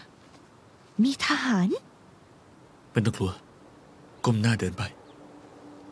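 A young man speaks briefly in a low voice.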